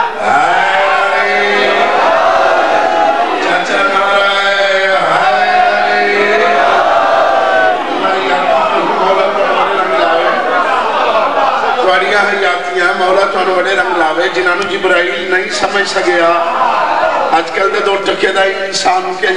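A crowd of men chants loudly together in an echoing hall.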